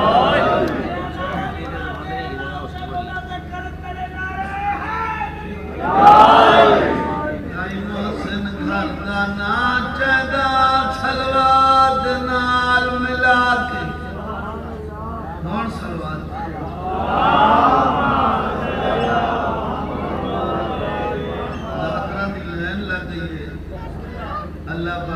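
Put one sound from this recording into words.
A middle-aged man sings or recites with feeling into a microphone, heard through loudspeakers.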